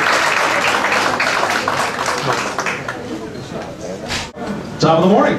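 A middle-aged man speaks with animation through a microphone over loudspeakers.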